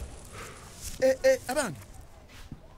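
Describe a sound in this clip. A young man asks a question politely.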